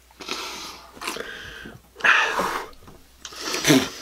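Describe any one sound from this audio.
A man sips a drink and exhales loudly.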